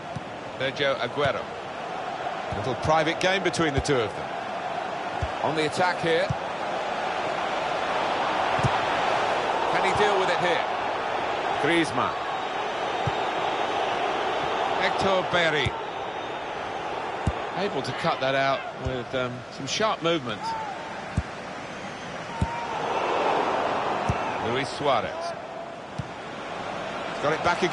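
A football is kicked with dull thuds.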